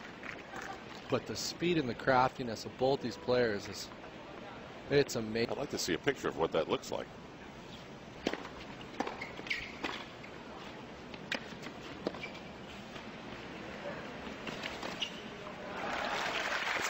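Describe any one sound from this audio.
A tennis ball is struck sharply with a racket, back and forth.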